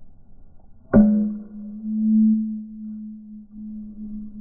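A metal bat strikes a baseball with a sharp, ringing ping.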